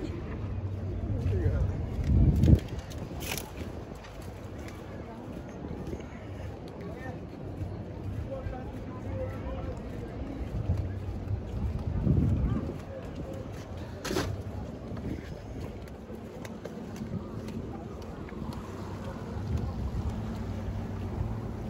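Gentle sea waves lap against a stone wall below.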